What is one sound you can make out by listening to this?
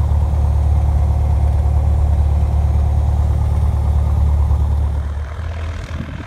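A small plane's engine drones loudly from inside the cabin.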